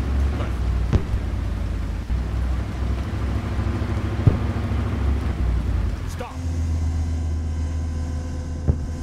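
Loud blasts boom now and then.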